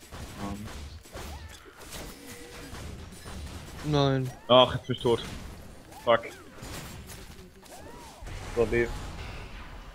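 Game spell blasts and hits crackle and thump during a fight.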